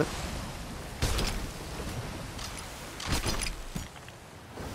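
A cannon fires with a deep boom.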